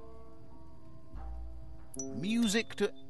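A music box plays soft sustained notes.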